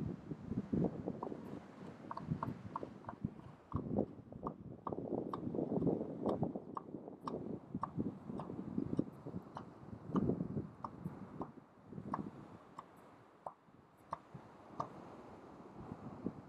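An elephant seal lets out deep, rhythmic drumming calls.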